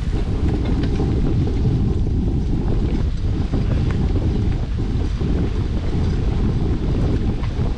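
Bicycle tyres crunch and rattle over a dirt road.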